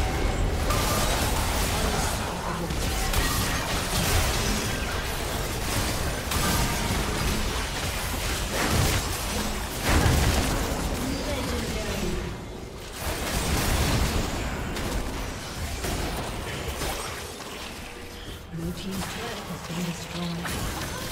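Game spells crackle and boom in a hectic fight.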